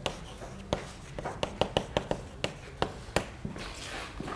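Chalk taps and scrapes sharply on a blackboard.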